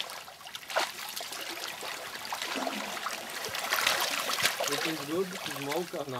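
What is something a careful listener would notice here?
Water sloshes around a man's wading legs.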